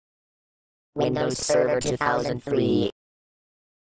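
A computer startup chime plays.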